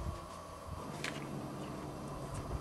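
A young man bites into an apple with a crunch.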